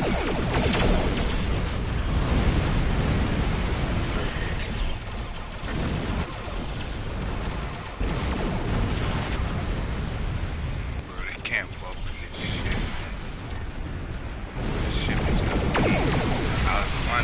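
Deep explosions rumble and boom repeatedly.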